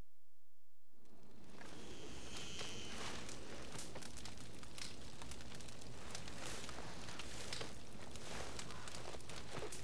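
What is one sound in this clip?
A campfire crackles and pops nearby.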